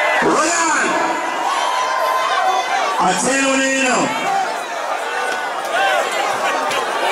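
A young man sings loudly close by.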